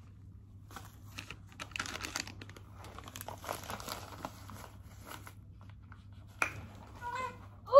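A diaper package crinkles.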